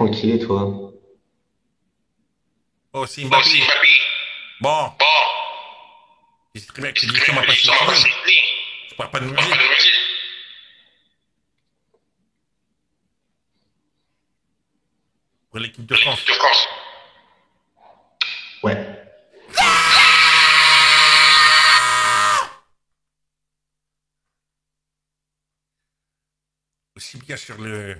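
A young man talks with animation through an online call.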